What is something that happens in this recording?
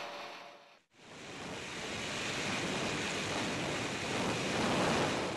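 A helicopter's rotor roars overhead.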